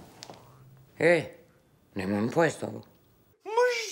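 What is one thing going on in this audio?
A middle-aged woman speaks expressively.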